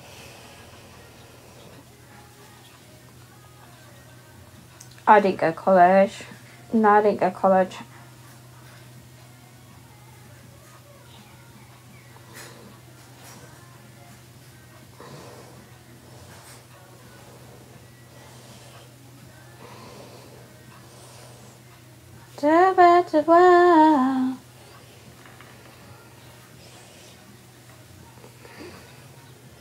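Hair rustles softly as hands braid it.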